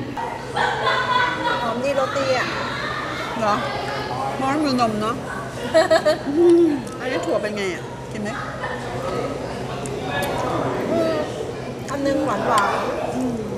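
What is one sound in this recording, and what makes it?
Cutlery clinks on plates.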